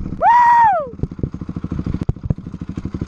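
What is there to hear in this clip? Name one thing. A dirt bike engine idles with a quick, uneven putter.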